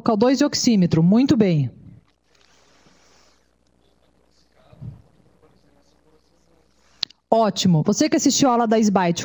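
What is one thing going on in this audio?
A woman lectures through a microphone.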